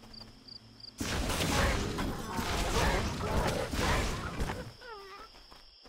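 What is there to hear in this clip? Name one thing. Weapons clash and blasts burst loudly in a fight.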